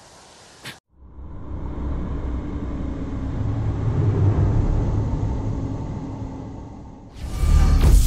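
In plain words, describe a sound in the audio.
A deep, swelling rumble builds and then surges loud.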